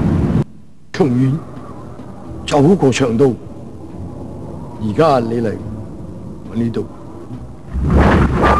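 An elderly man speaks slowly and calmly.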